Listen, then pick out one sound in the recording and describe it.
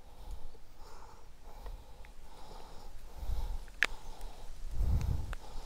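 Wind gusts blow across the microphone outdoors.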